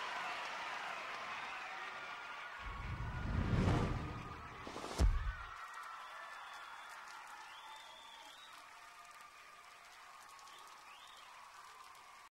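Rock music plays and slowly fades.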